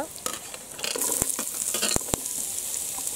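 Chopped vegetables tumble into a hot pan.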